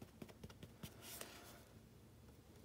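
A squeezed plastic glue bottle hisses briefly.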